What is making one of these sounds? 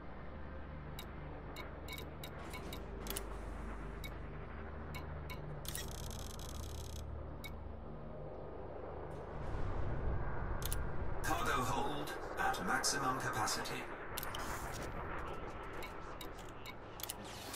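Short electronic interface clicks sound at irregular intervals.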